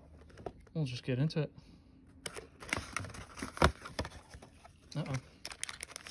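Cardboard scrapes and flaps as a box is opened.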